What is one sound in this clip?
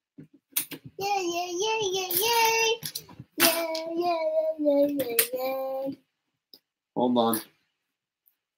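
A young child talks in a high, sing-song voice close by.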